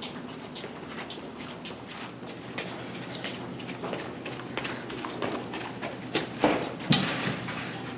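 Footsteps tap on a hard floor in an echoing hallway.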